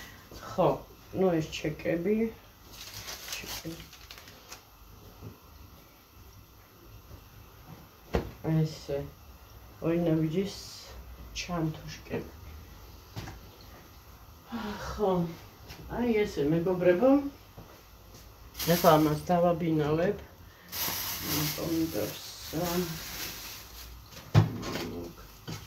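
A middle-aged woman talks casually close by, in short bursts with pauses.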